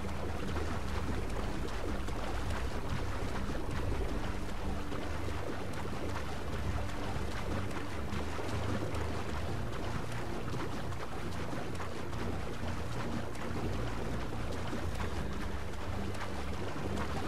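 Water splashes steadily as a swimmer strokes through it.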